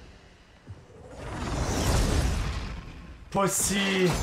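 Flames burst and roar loudly.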